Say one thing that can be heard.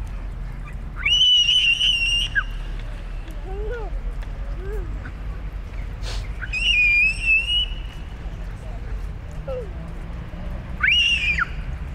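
A small child squeals in high, drawn-out cries.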